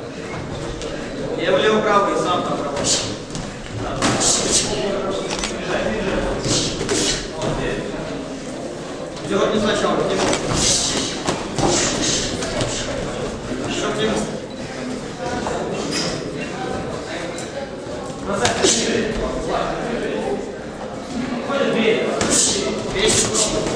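A crowd of spectators calls out and cheers.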